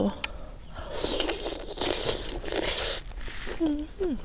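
A young woman chews and slurps food noisily up close.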